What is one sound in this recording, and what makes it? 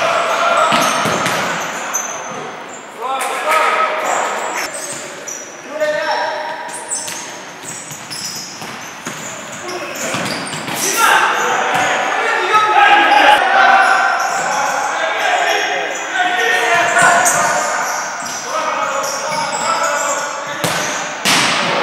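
A futsal ball is kicked hard in an echoing sports hall.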